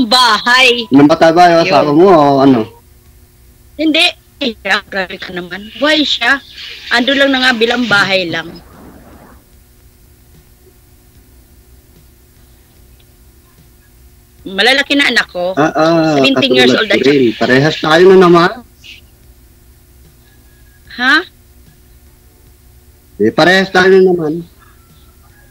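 A man talks over an online call.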